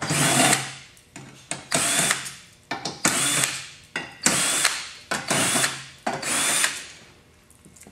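A cordless drill whirs in short bursts, driving screws into sheet metal.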